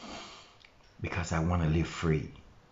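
A middle-aged man speaks calmly, close to the microphone.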